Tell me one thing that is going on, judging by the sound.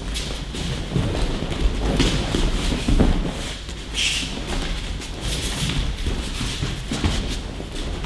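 Bodies thud onto padded mats in a large echoing hall.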